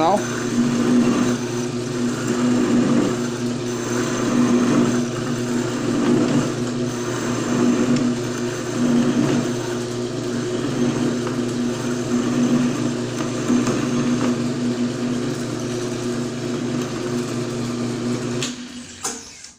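A cutting tool scrapes and whirs against spinning metal.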